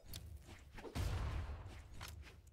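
A loud booming blast rumbles.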